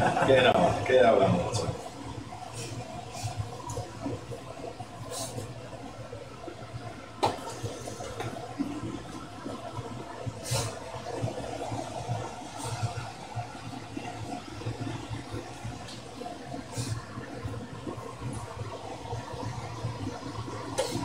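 A metal hand press clicks and clanks now and then.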